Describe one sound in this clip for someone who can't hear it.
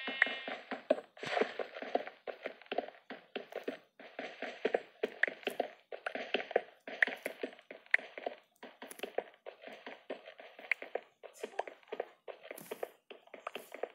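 A pickaxe chips repeatedly at stone.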